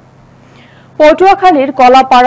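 A young woman reads out the news clearly into a microphone.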